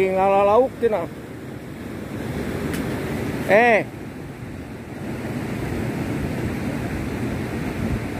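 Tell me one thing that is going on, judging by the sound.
Water sloshes as a man wades through a shallow river.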